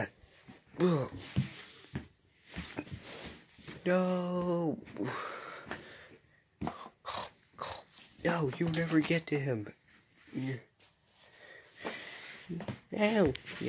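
Soft plush toys rustle and thump as a hand moves them about.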